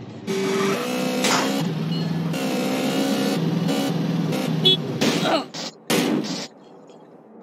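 A motorbike engine roars loudly and revs.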